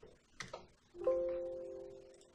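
A computer error chime rings out and fades.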